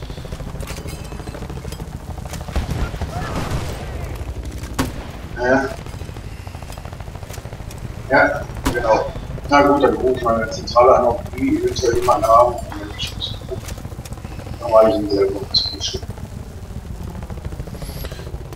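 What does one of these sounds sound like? A helicopter's rotor thuds steadily overhead.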